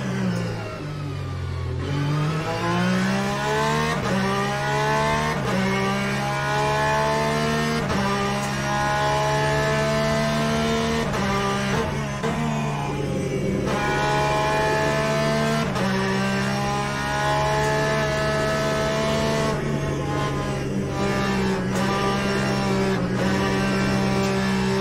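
A racing car engine roars loudly, rising in pitch and dropping sharply with each gear change.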